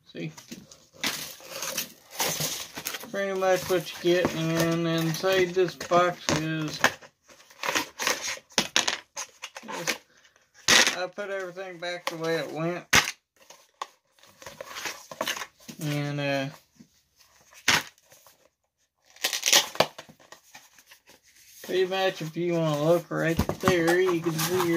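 Cardboard packaging rustles and crinkles.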